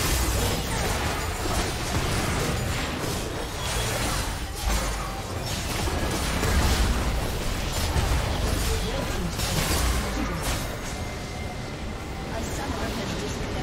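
Spell blasts and clashes ring out in a hectic battle.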